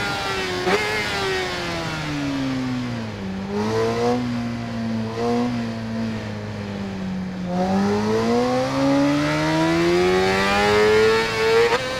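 An inline-four sport bike engine drops to low revs through a corner and then winds back up.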